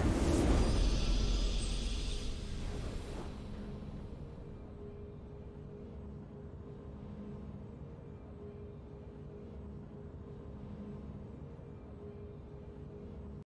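A soft, triumphant tune hums quietly.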